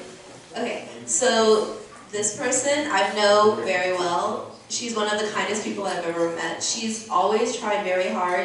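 A young woman speaks calmly through a microphone.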